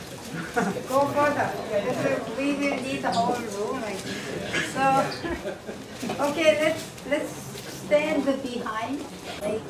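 A middle-aged woman talks and laughs cheerfully close by.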